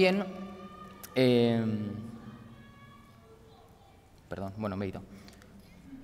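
A man speaks calmly into a microphone, heard through a loudspeaker in an echoing hall.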